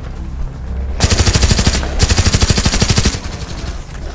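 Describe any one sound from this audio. A machine gun fires rapid, loud bursts at close range.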